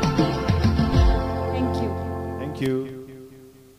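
A woman sings loudly through a microphone, then fades out.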